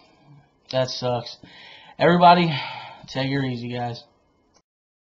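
A young man speaks calmly, close to a microphone.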